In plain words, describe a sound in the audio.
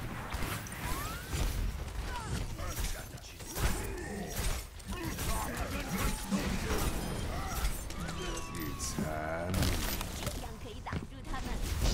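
Explosions and impacts boom.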